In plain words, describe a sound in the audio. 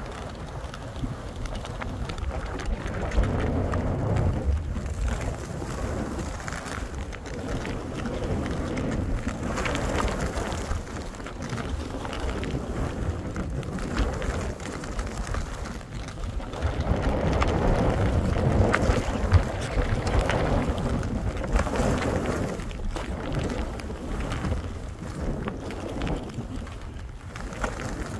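Skis hiss and scrape over soft snow close by, in swells that rise and fall.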